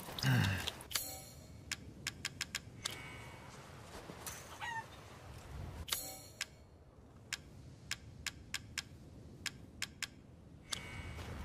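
Short interface clicks tick as a menu is scrolled.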